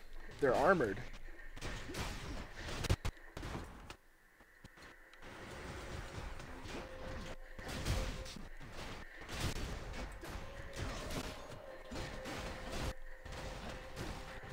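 Video game combat effects clash and burst.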